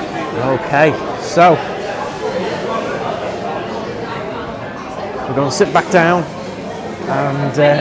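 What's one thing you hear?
Diners chatter and murmur all around in a busy room.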